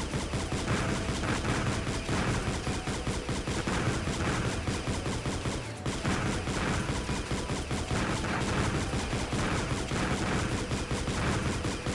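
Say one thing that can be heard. Fast electronic game music plays with a driving beat.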